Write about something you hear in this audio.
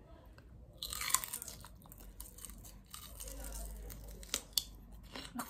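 A young woman crunches on a raw vegetable.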